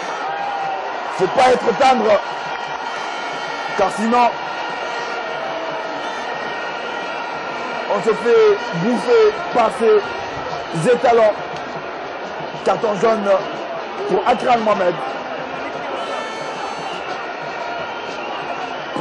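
A large crowd murmurs and chants steadily in an open stadium.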